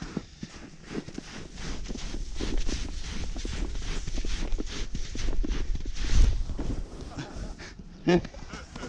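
A snowboard scrapes and hisses over crusty snow.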